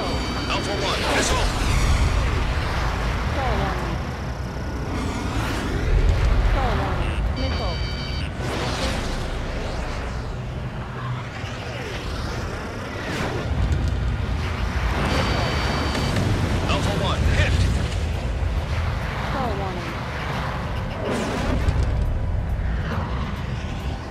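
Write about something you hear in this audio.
Missiles whoosh away and explode.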